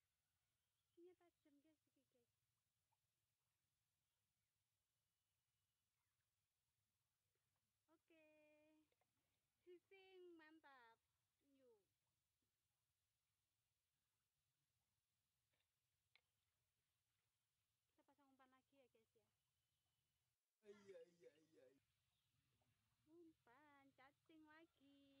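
A young woman talks calmly and close by, with pauses.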